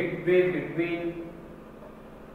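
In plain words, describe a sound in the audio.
A man speaks calmly nearby, as if lecturing.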